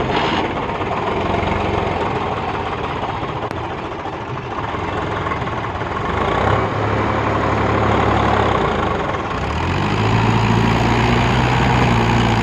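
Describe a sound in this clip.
A tractor engine chugs loudly, rising as it pulls a heavy load.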